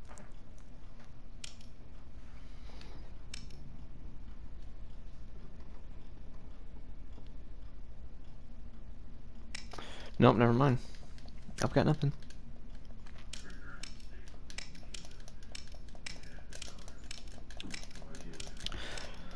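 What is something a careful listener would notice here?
A metal combination lock dial clicks as it turns.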